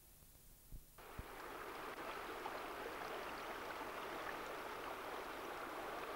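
Water rushes loudly over rapids.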